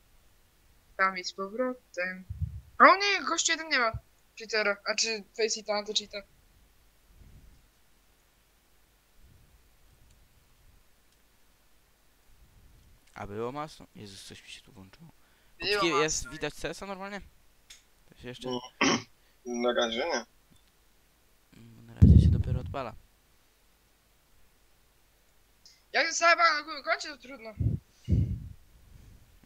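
A teenage boy talks with animation into a headset microphone, close by.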